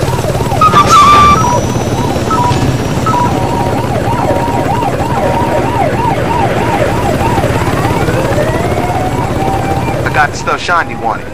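A helicopter's rotor whirs and thumps steadily.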